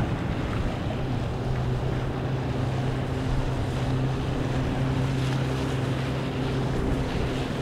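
A motorboat engine hums steadily nearby.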